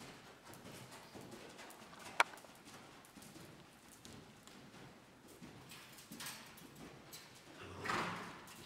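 A horse trots with soft, muffled hoofbeats on sand.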